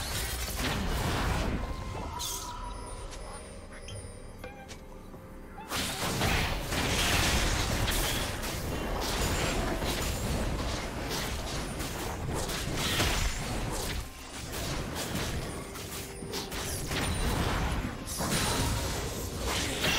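Fantasy battle effects whoosh and crackle as characters fight.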